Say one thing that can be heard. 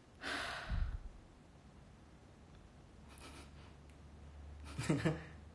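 A young man speaks softly and briefly, close by.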